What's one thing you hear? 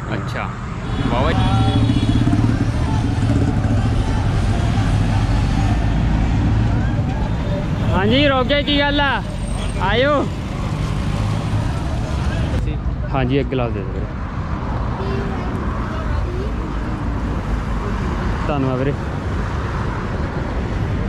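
Vehicle engines rumble steadily along a busy road.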